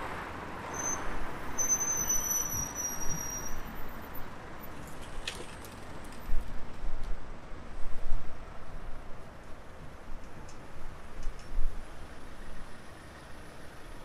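City traffic drives past on a street.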